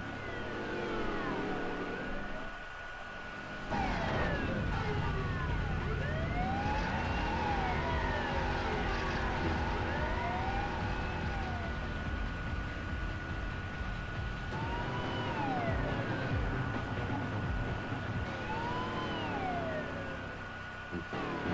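A siren wails, rising and falling over and over.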